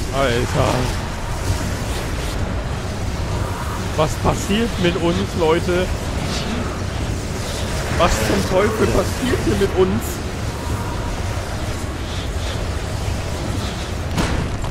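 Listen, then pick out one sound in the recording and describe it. Wind rushes loudly past a figure falling through the air.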